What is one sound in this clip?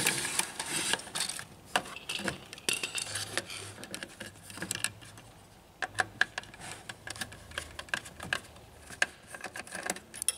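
Plastic parts click and rattle as a circuit board is handled.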